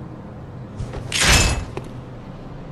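A heavy weapon swings through the air with a sharp whoosh.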